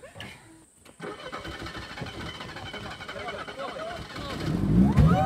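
A car engine runs steadily.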